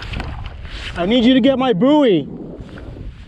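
A fishing reel's drag whines briefly.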